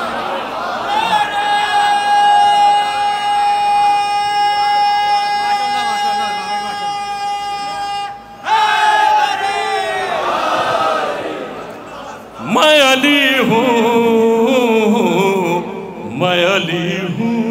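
A man sings into a microphone through loudspeakers, holding long notes.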